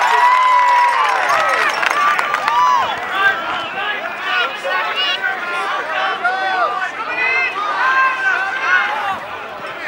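Players shout across the field.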